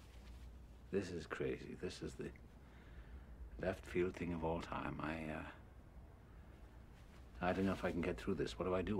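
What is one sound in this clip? An older man speaks calmly and warmly, close by.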